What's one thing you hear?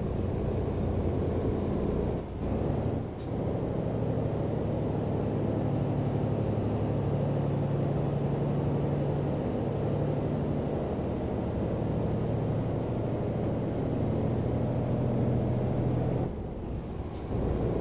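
Tyres roll and hum on the road.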